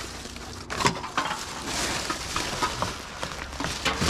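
Aluminium cans clink together.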